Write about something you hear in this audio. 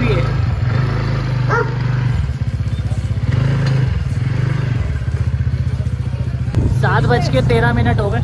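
A motorbike engine idles and revs up close.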